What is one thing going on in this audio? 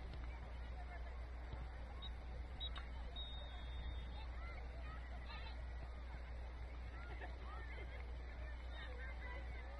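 Young female players shout and call to each other in the distance outdoors.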